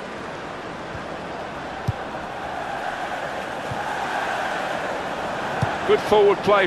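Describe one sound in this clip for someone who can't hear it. A football is kicked with short thuds.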